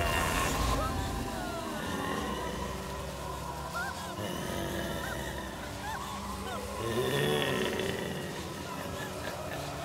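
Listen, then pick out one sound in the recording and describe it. A young woman cries out in fear.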